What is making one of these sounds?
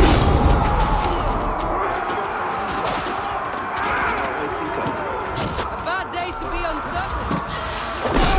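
Weapons clash and thud in a close fight.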